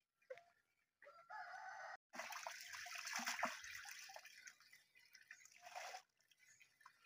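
Water sloshes and splashes in a bucket.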